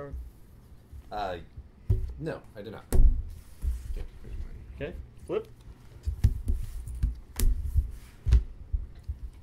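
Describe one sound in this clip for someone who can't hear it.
Playing cards tap and slide on a wooden table.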